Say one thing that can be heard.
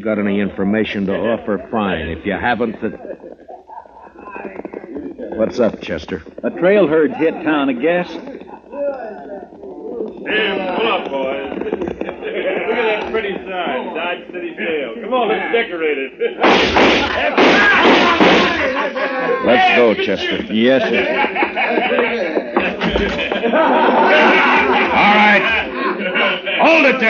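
An old radio plays a broadcast through a small loudspeaker.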